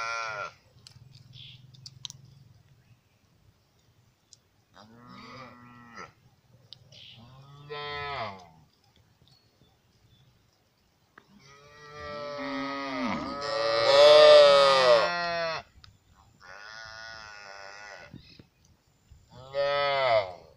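Calves moo and bleat loudly, close by, one after another.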